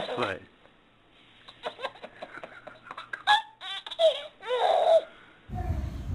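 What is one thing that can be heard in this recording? A baby girl laughs loudly in bursts and squeals.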